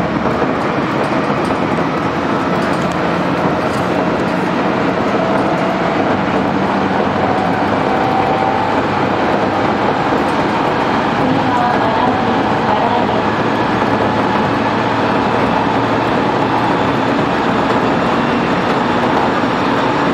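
Wheels clatter on the rails.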